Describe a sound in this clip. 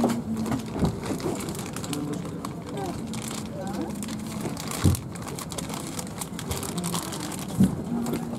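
Luggage bumps and thuds into overhead bins.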